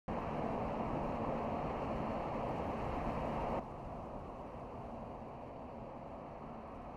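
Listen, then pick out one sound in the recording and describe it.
A car drives along a paved road with a steady rush of tyre noise.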